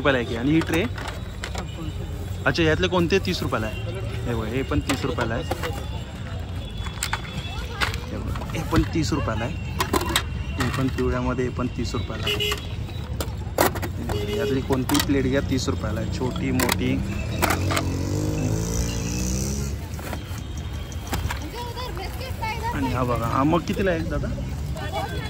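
Plastic plates clack softly as a hand handles them.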